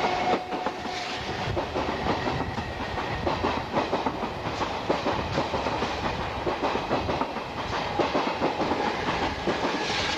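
Train wheels clatter rapidly over rail joints as the train passes close below.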